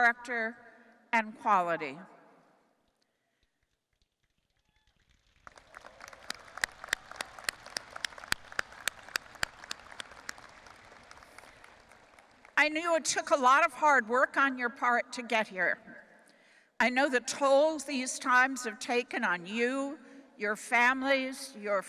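An elderly woman speaks calmly into a microphone over a loudspeaker.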